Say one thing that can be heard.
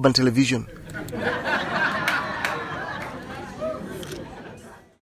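A group of people laugh together.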